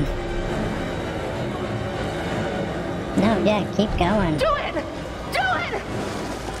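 A young woman cries out in distress.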